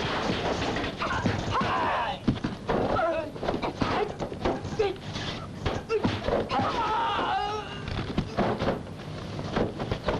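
A woman cries out in anguish.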